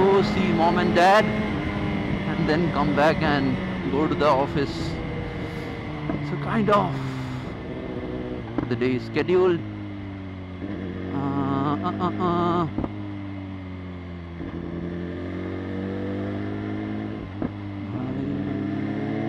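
A motorcycle engine hums and revs up and down steadily.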